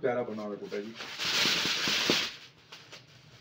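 Paper crinkles and rustles as a kite is handled.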